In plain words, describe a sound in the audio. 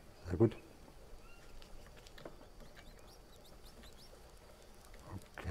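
A small campfire crackles softly.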